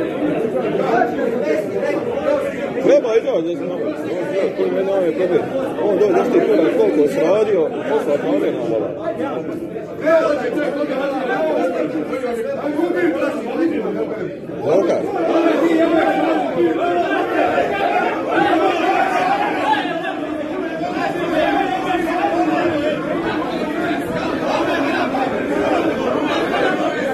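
A crowd of men talk loudly over one another in an echoing room.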